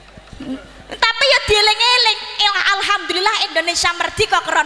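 A young woman sings loudly through a microphone and loudspeakers.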